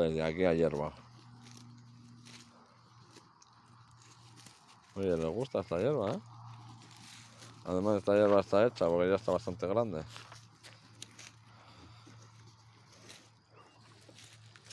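Sheep tear and munch grass close by.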